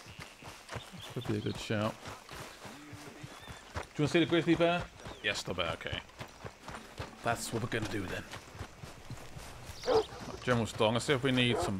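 A man runs with quick footsteps on dirt.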